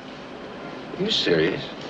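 A man answers with surprise close by.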